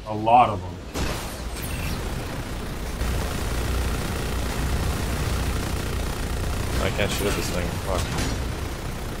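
Game gunfire rattles in quick bursts.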